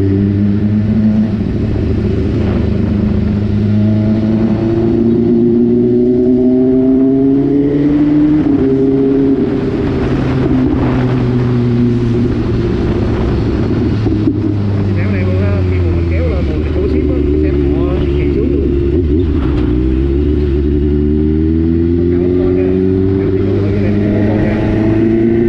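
Wind rushes past a moving rider outdoors.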